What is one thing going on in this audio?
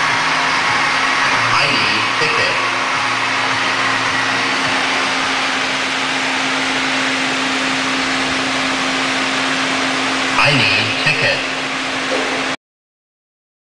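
A game machine hums and jingles amid the steady din of a busy arcade hall.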